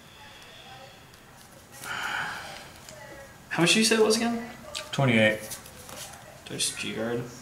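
Playing cards rustle and slide as they are shuffled by hand.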